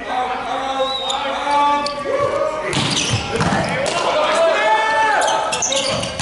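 A volleyball is struck hard by hand.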